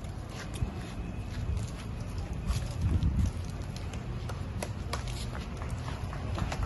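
A group of people claps hands outdoors.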